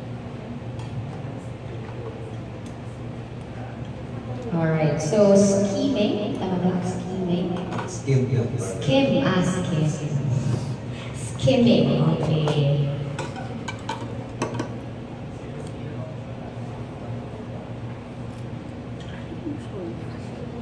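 Metal spoons clink softly against a ceramic cup.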